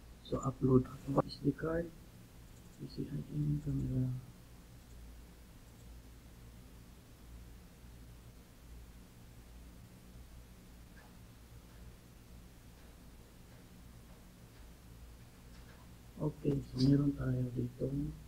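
A young man talks calmly and close into a microphone.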